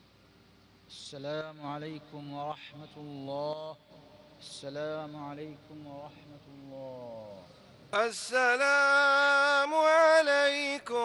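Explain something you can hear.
A man chants in a long, drawn-out voice through loudspeakers, echoing outdoors.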